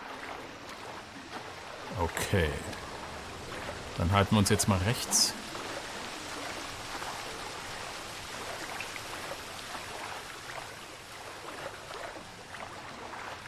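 Water splashes steadily as a swimmer paddles through it.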